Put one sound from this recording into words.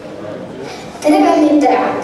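A boy speaks through loudspeakers in a large hall.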